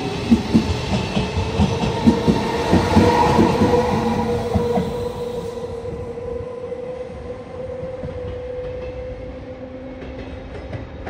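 An electric locomotive whines as it rolls past.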